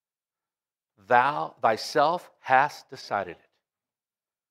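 A middle-aged man speaks with emphasis into a microphone.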